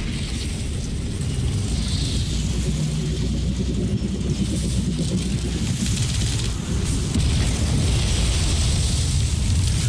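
Rapid gunfire rattles steadily.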